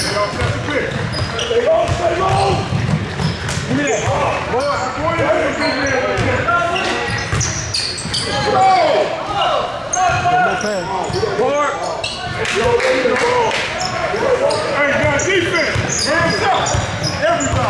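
A basketball bounces on the wooden floor.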